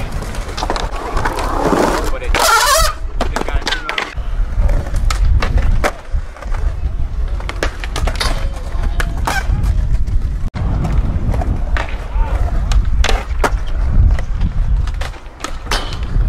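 Skateboards snap and clack as they hit the ground and rails.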